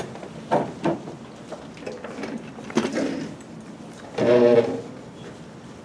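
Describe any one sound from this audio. A woman speaks briefly through a microphone in a small room.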